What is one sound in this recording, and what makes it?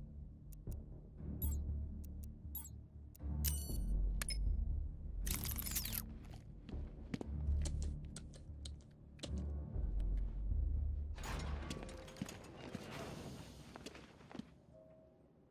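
Low game music rumbles.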